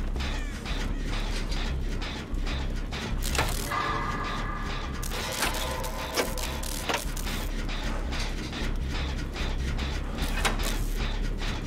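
A machine rattles and clanks while being worked on.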